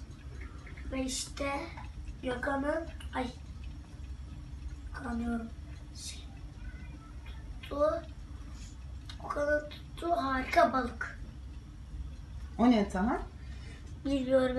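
A young boy talks nearby in short bursts.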